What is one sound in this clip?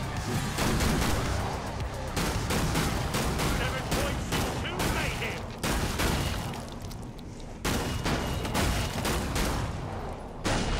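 Rapid gunshots ring out with a booming echo.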